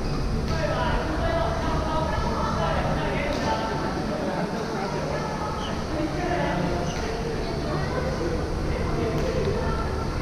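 Rackets hit a shuttlecock with sharp pops in a large echoing hall.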